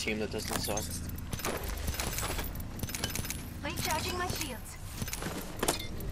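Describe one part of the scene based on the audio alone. Short electronic clicks and beeps sound as game items are picked up.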